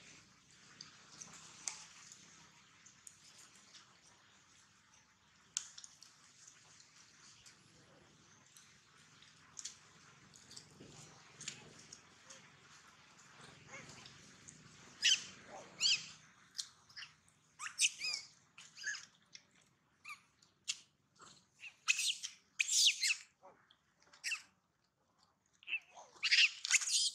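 A monkey chews and munches on juicy fruit close by.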